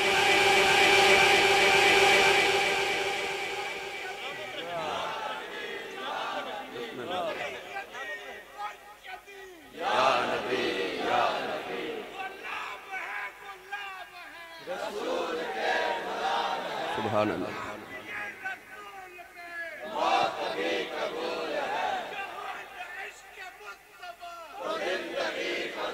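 A middle-aged man speaks with animation through a loudspeaker, his voice echoing outdoors.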